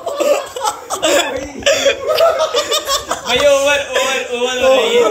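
Several young men laugh loudly and shout nearby.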